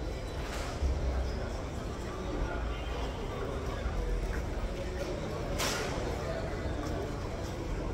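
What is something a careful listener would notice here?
A crowd murmurs in the background in an open space.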